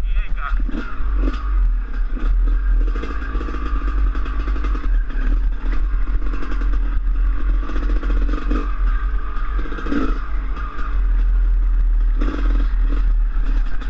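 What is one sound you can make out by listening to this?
A dirt bike engine revs and putters up close.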